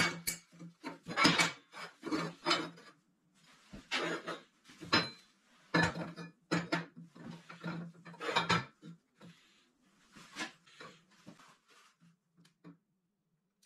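Metal pipes clank and knock against a steel table.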